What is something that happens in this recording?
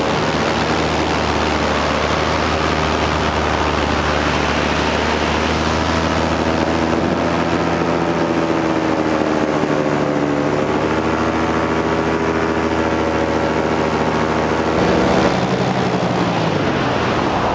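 A paramotor engine drones in flight.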